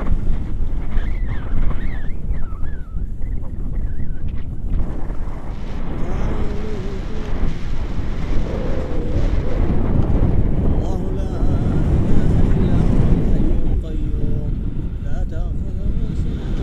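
A man talks close to the microphone, heard over the wind.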